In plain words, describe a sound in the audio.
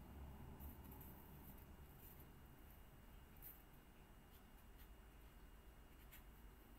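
A grinder hums steadily as metal is ground against it.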